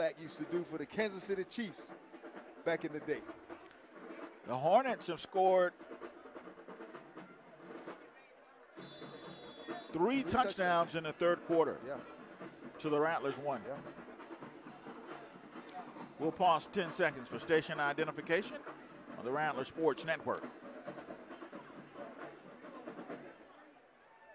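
A marching band plays brass and drums loudly.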